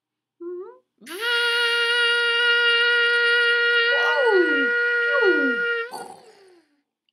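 A leaf blower whines loudly and steadily, then cuts off.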